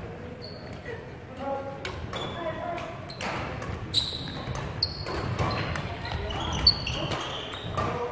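Badminton rackets strike shuttlecocks with sharp pops.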